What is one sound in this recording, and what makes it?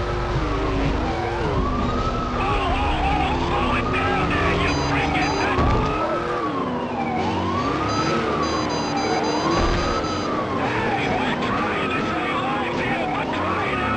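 A racing boat engine roars steadily.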